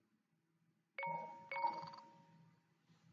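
Bright chiming tones ring out twice.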